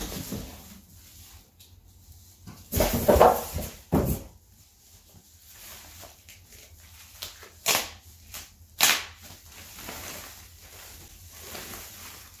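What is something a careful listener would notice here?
Plastic wrapping crinkles and rustles under a hand.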